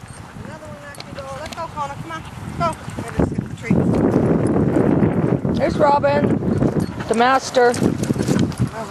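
Puppies yelp and whine.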